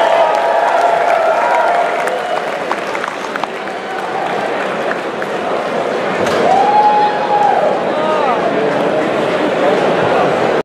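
A large audience applauds loudly in an echoing concert hall.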